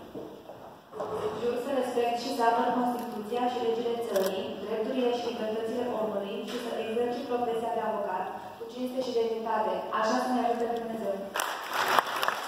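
A young woman reads out steadily into a microphone, heard through loudspeakers in an echoing hall.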